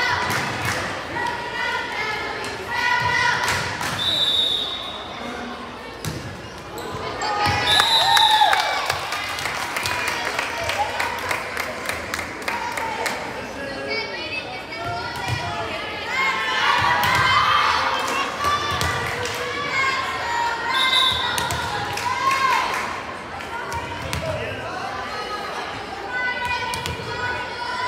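Many voices of a crowd chatter and cheer in a large echoing gym.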